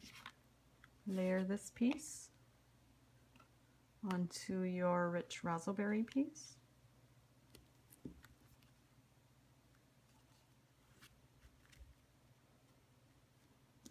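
Card stock rustles and slides softly as it is handled and pressed down.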